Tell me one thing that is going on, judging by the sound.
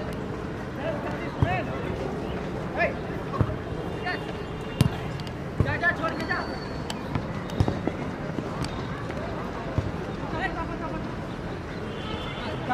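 Men shout and call out across an outdoor pitch.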